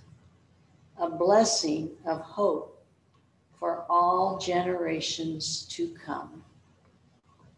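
An older man speaks calmly into a microphone, heard through loudspeakers in a large room.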